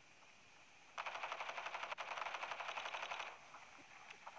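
A burst of rapid gunfire rattles.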